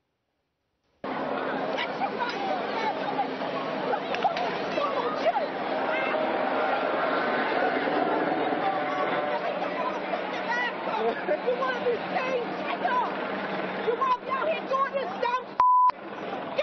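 A crowd of young people clamours outdoors.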